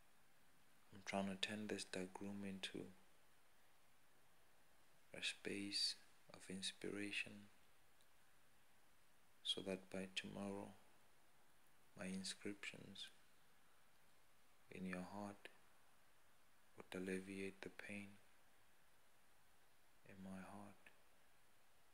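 A man speaks close up in short bursts with pauses between.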